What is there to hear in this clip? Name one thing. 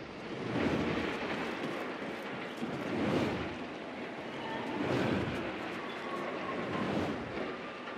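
Footsteps tread on a metal floor.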